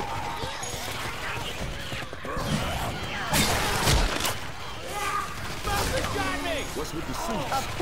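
A blade swishes through the air in quick swings.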